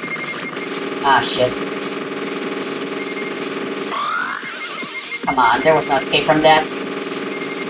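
Bright chiming game effects burst out in quick flurries.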